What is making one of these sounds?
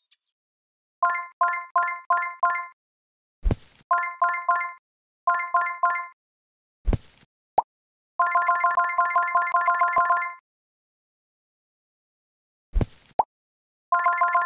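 A tablet game plays quick runs of bright chiming notes.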